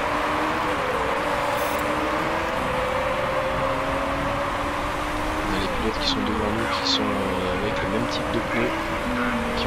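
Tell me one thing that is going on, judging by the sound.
Racing car engines drone and whine steadily as the cars speed past.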